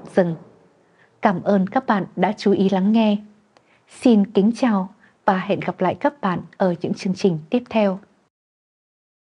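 A woman speaks clearly and steadily into a microphone, like a news presenter.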